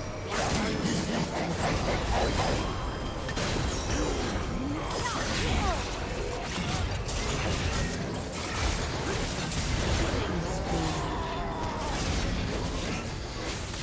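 Spell blasts and weapon strikes crash and whoosh in a fast battle.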